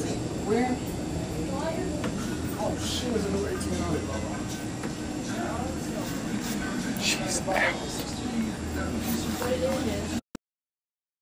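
A man talks close by.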